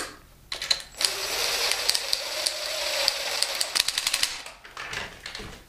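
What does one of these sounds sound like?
A cordless impact driver whirs and rattles.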